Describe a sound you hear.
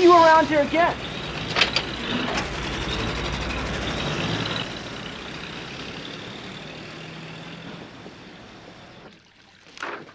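A pickup truck engine runs and drives away, fading.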